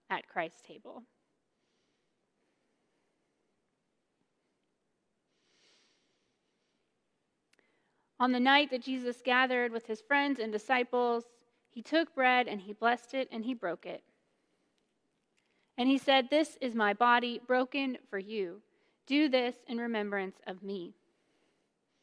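A woman speaks calmly and clearly into a microphone.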